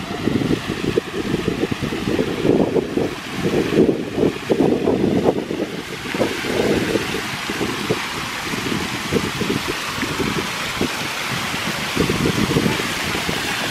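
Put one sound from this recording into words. Water splashes and trickles down steps.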